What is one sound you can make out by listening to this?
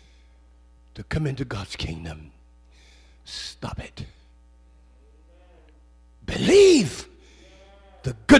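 An elderly man preaches with animation through a microphone, pausing between phrases.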